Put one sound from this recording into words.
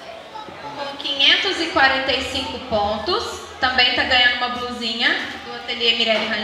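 A young woman speaks loudly through a microphone.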